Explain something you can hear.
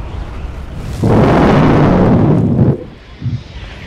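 Steam bursts out with a loud rushing roar.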